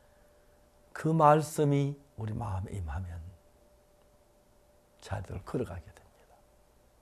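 An elderly man speaks calmly and warmly into a close microphone, in short phrases with pauses.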